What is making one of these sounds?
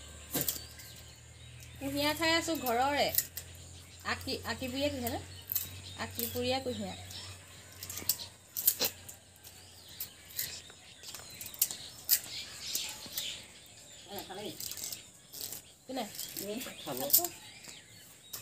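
A knife scrapes and cuts a plant stalk.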